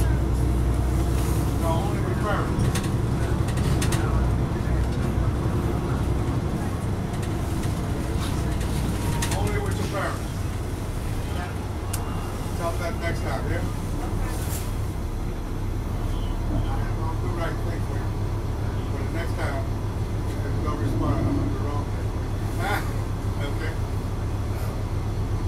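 A bus engine rumbles low and steady from inside the bus.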